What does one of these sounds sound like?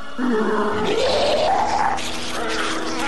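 A crowd of people shouts and screams in panic.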